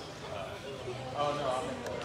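A man speaks close to a phone microphone.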